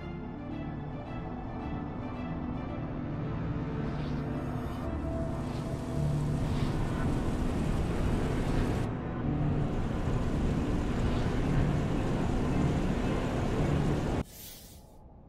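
Valves hiss as tanks fill with a loud rushing roar.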